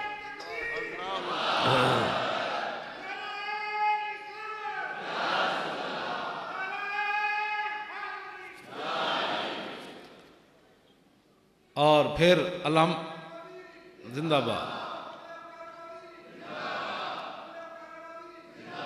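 A large crowd chants together in response.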